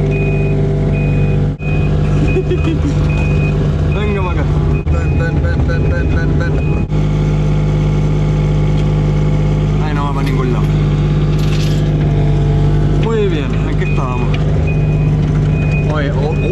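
A diesel engine hums steadily close by.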